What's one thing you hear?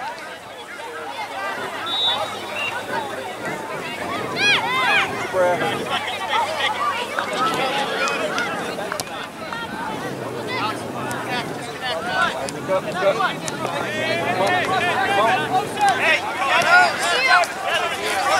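Young players and spectators shout and call out across an open field outdoors.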